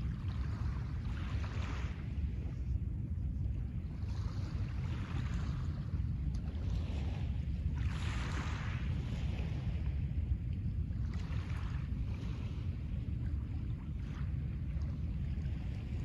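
Small waves lap gently onto a pebble shore.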